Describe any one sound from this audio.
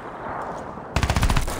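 A rifle fires a rapid burst.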